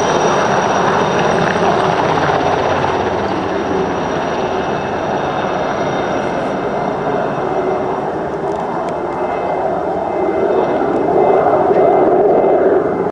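A turbine helicopter's rotor thumps as the helicopter lifts off and flies away.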